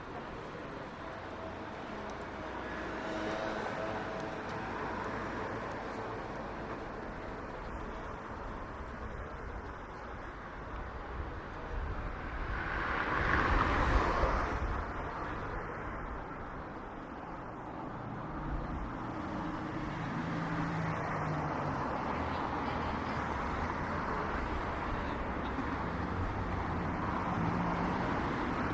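Traffic hums steadily on a city street outdoors.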